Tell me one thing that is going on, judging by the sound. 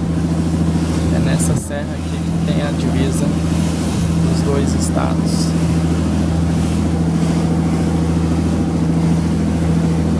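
A boat engine hums steadily and low.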